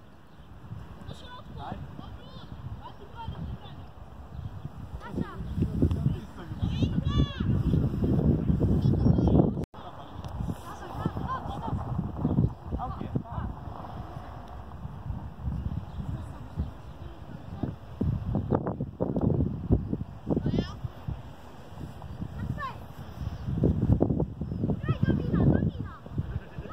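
Children shout across an open field.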